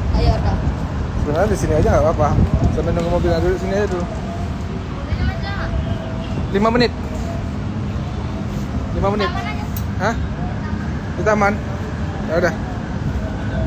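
A boy talks.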